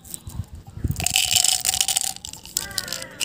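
Small candies rattle and clatter as they are poured into a plastic bottle.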